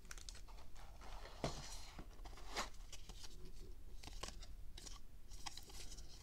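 Stiff paper cards rustle as they are handled.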